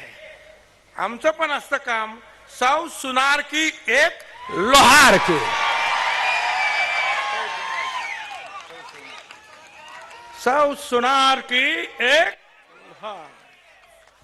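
An elderly man speaks forcefully through a microphone over loudspeakers.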